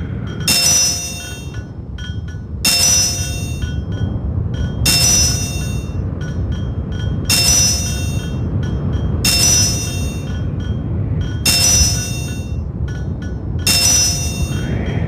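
A bright electronic chime rings again and again at a steady pace.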